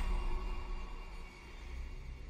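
A man gasps softly, close by.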